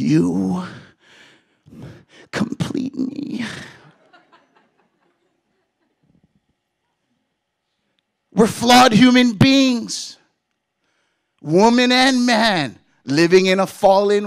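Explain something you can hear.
A man speaks with animation into a microphone, heard over a loudspeaker in a large room.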